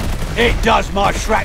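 A rifle fires in sharp bursts.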